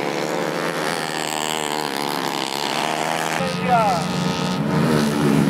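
Two-stroke racing kart engines scream at full throttle.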